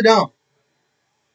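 A man speaks a short word close by.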